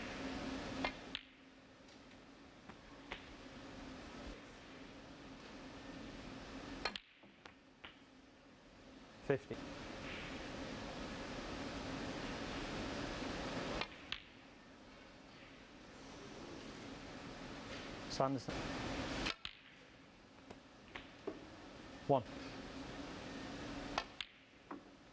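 A snooker cue strikes the cue ball.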